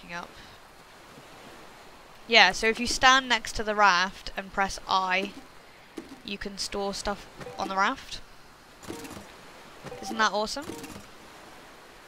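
A young woman talks with animation into a nearby microphone.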